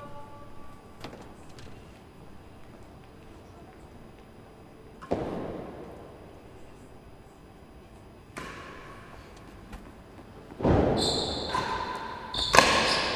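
A racket strikes a ball with sharp knocks that echo in a large hall.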